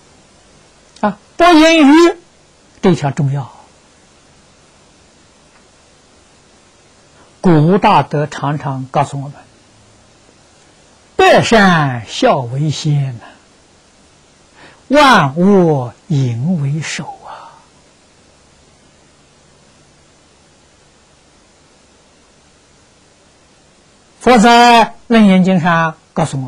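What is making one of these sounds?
An elderly man speaks calmly into a close microphone, in phrases with long pauses.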